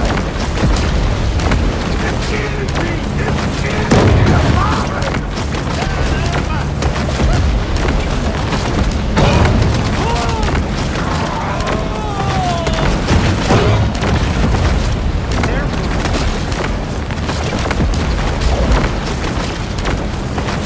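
Electric blasts crackle and boom over the water.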